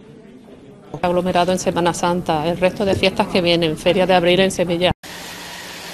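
A young woman speaks calmly into a nearby microphone.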